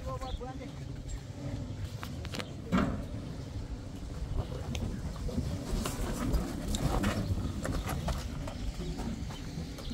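Footsteps crunch on loose gravel and rubble.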